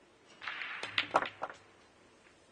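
Pool balls click against each other on the table.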